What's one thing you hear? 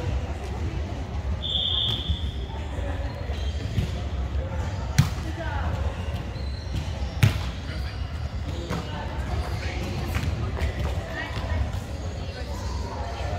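Young men call out to each other across the hall.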